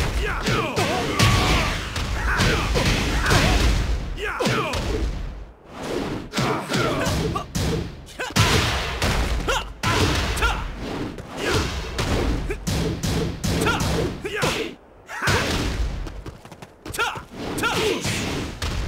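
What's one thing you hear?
Fiery blasts burst and crackle as blows connect.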